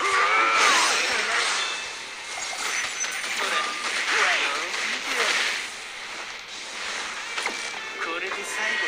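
Energy blasts whoosh and burst loudly.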